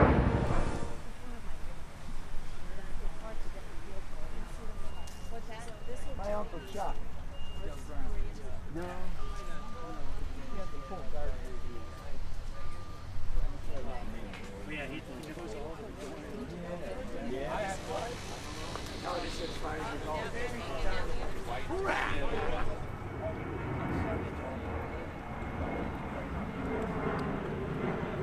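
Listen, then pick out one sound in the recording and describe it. Many men and women chat in a low murmur outdoors.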